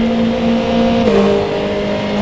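A racing car engine shifts up a gear with a sudden drop in pitch.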